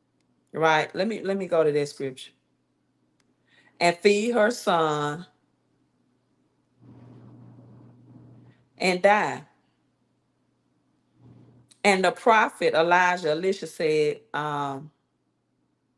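A woman speaks slowly and emotionally into a close microphone, with long pauses.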